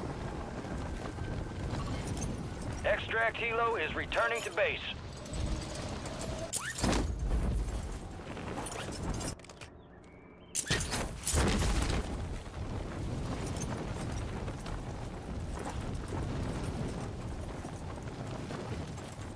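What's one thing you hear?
Wind rushes loudly past during a fall through the air.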